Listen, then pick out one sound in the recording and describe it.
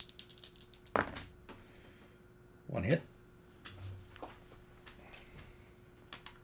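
Dice rattle and clatter in a tray.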